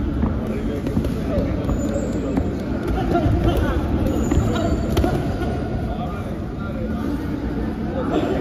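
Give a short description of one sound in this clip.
Shoes squeak and scuff on a padded ring floor.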